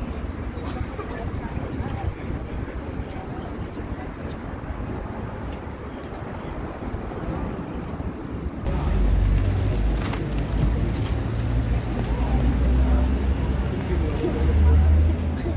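A crowd of people chatter outdoors.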